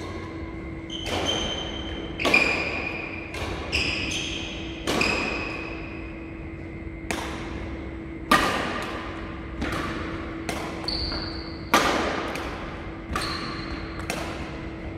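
Badminton rackets smack a shuttlecock back and forth, each hit ringing out in a large echoing hall.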